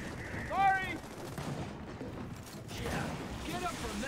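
Gunfire rattles nearby.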